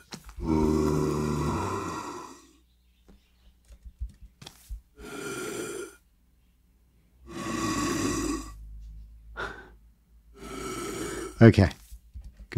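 A zombie groans in low, rasping bursts.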